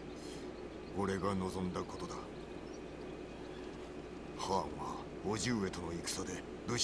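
A man speaks in a low, calm voice.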